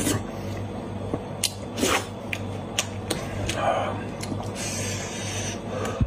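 Meat tears wetly apart in someone's hands.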